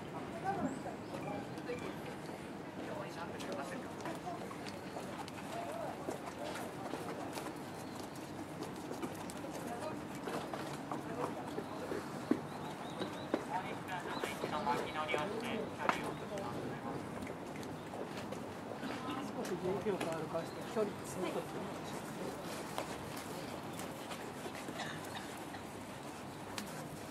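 Horse hooves thud softly on sand at a steady walk.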